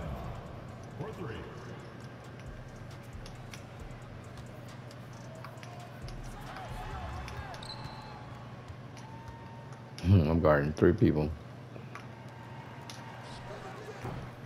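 A basketball bounces with dull thumps on a wooden floor.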